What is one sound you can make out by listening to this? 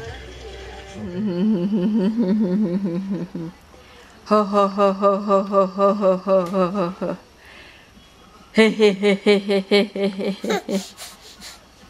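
A baby laughs loudly and gleefully in bursts, close by.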